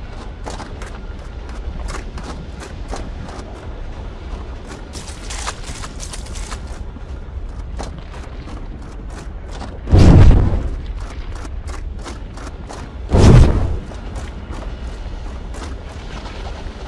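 Footsteps thud steadily on the ground.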